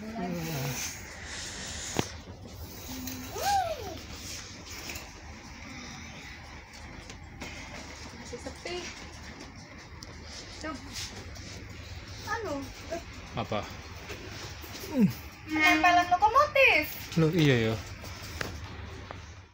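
Young children talk and call out excitedly close by.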